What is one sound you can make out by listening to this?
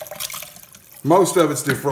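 Liquid pours from a glass jar into a pot.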